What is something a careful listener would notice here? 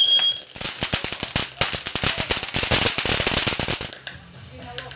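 A firework fountain crackles and pops rapidly.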